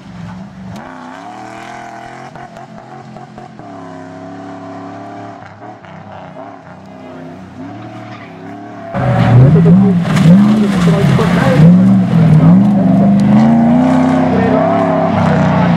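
Tyres skid and spray gravel.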